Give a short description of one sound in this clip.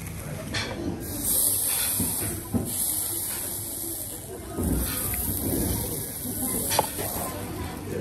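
Meat sizzles on a hot stone.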